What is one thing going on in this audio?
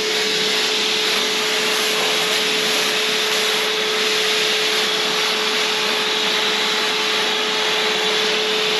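A spray gun hisses steadily with a constant hum.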